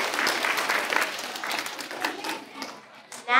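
A group of children clap their hands.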